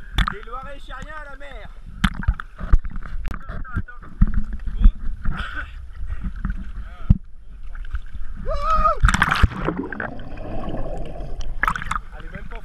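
Sea water laps and sloshes close by.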